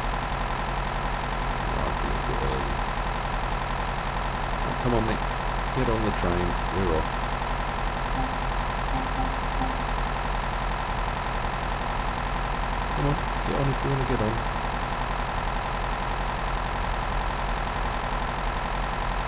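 A diesel train engine idles with a steady low rumble.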